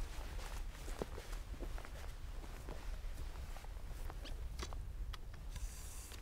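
Footsteps crunch softly on rough ground.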